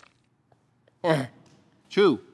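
A young man lets out short, drawn-out exclamations close to a microphone.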